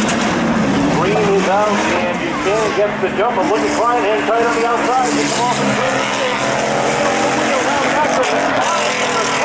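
Tyres squeal on asphalt as cars slide.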